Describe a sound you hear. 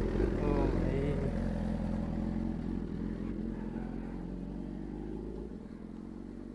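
A motorcycle engine revs and fades as the motorcycle rides away.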